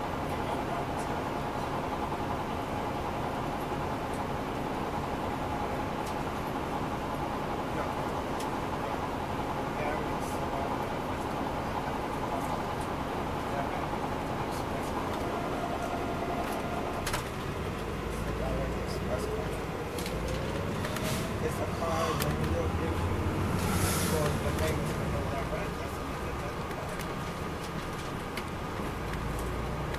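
A diesel transit coach's engine hums, heard from inside as it cruises along a street.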